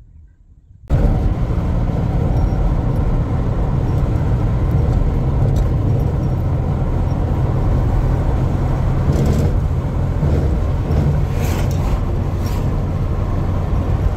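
A car drives along an asphalt road, heard from inside.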